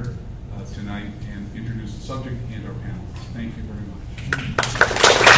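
An elderly man speaks calmly up close.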